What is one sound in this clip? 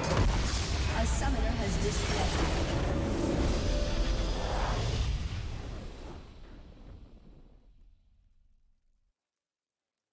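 A triumphant orchestral fanfare swells, then slowly fades away.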